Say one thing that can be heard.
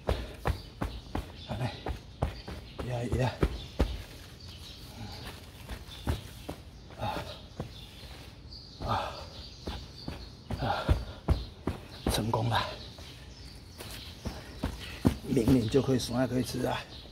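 Boots stamp and scuff on loose dry soil.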